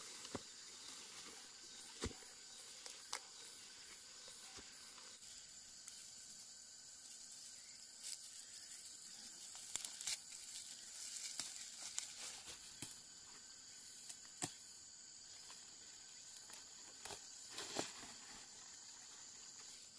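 A plastic sack rustles.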